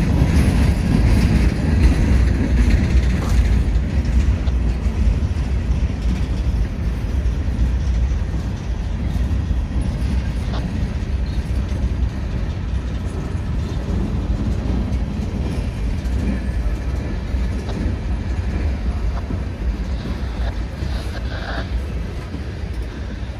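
Steel wheels clatter and clank over rail joints.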